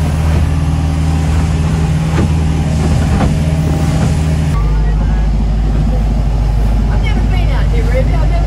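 A boat's engine drones steadily.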